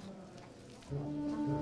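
A brass band begins to play.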